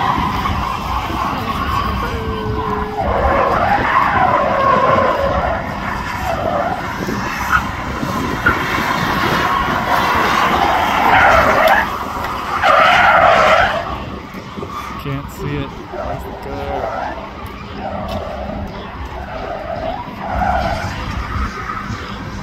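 A car engine roars and revs as it drifts outdoors.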